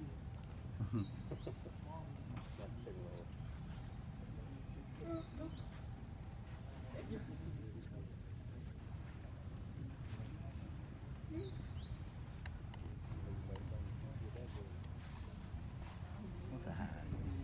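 Monkeys patter softly across stone and dry leaves.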